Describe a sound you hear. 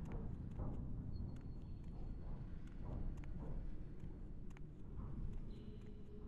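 Footsteps tread softly on a hard floor.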